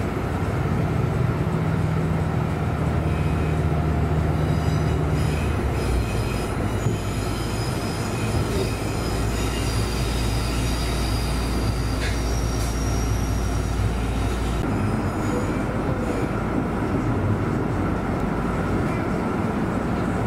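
A tram hums and rumbles steadily along its rails, heard from inside.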